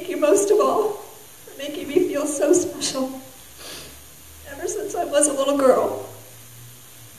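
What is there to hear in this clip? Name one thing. A young woman speaks slowly and emotionally into a microphone, with pauses.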